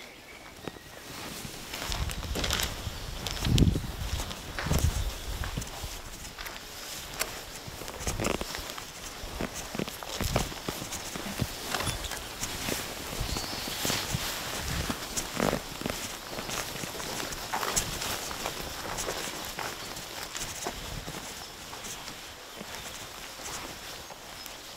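Clothing rustles and brushes with each step.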